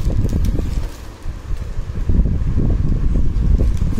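Cloth garments rustle softly under a hand.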